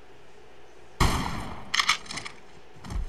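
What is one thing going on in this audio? A shotgun fires loudly.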